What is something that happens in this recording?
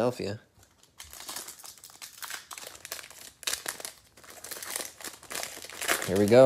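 A plastic wrapper crinkles and tears as it is pulled open.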